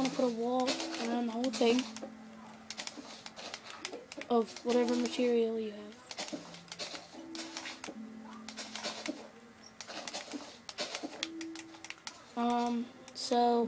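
Short clicks and thuds of a video game play from a television speaker.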